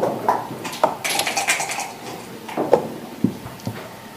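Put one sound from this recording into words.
Checkers click as they are moved on a wooden board.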